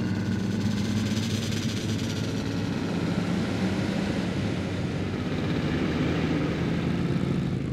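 Car engines drone steadily as vehicles drive past on a road.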